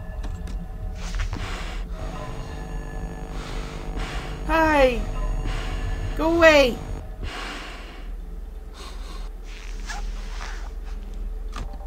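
A middle-aged woman talks with animation into a close microphone.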